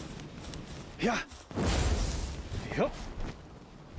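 A magical burst whooshes and rumbles.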